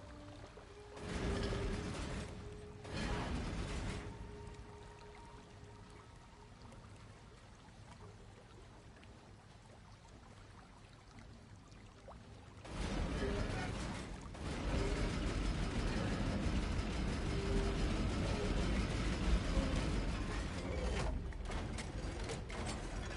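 A heavy stone mechanism grinds and rumbles loudly in bursts.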